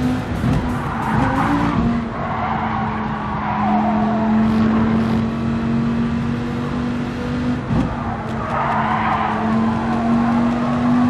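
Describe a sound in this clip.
Tyres squeal through a corner.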